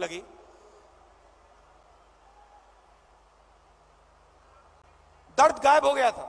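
A man speaks forcefully into a microphone over a loudspeaker.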